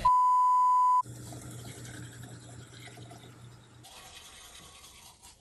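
A man makes soft, wet mouth sounds close to a microphone.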